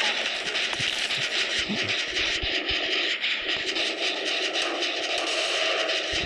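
A motor rattles and clatters nearby.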